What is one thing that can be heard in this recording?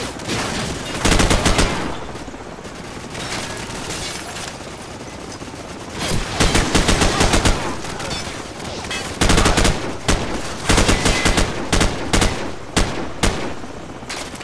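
Automatic rifles fire in loud, rapid bursts.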